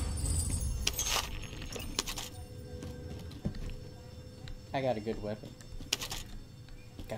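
A short metallic click sounds as gear is picked up.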